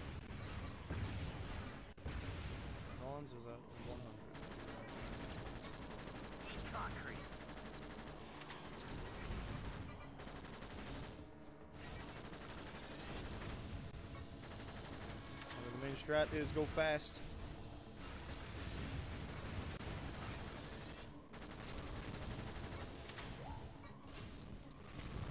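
Weapons fire and explode in a racing game.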